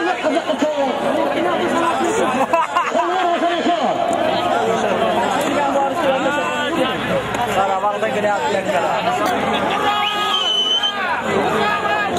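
A crowd of men shouts and calls out close by.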